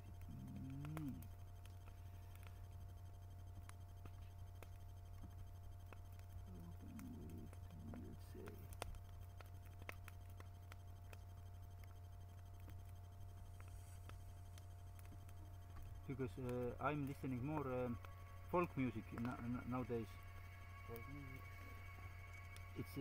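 A bonfire crackles.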